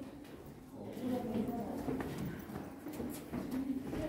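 Footsteps shuffle on a stone floor nearby.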